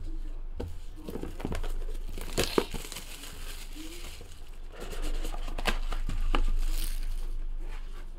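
Plastic wrap crinkles and tears.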